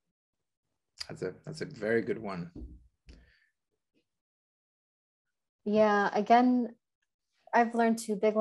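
A young woman speaks animatedly over an online call.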